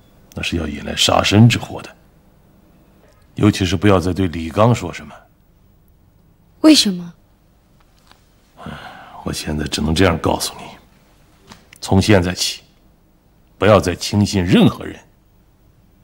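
A middle-aged man speaks close by in a low, serious voice.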